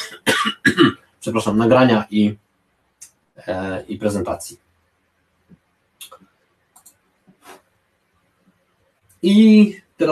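A man speaks calmly through an online call, in short phrases with pauses.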